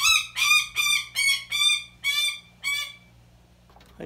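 A small bird of prey calls with quick, sharp, repeated cries.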